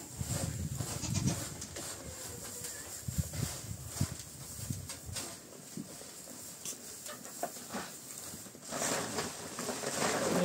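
Dry feed rustles as a man scatters it into a trough.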